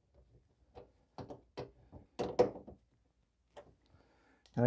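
Small plastic parts click and tap as they are handled.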